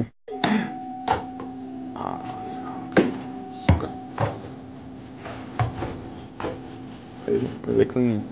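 A mop handle knocks against a hard surface several times.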